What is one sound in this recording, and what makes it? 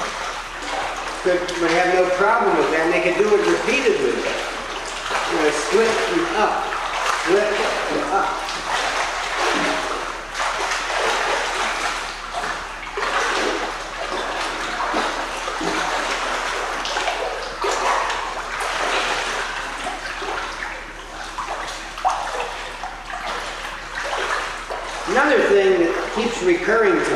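Water splashes as a person swims in an echoing indoor pool.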